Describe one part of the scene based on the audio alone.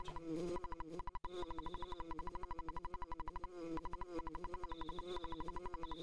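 Rapid game text blips beep as dialogue scrolls.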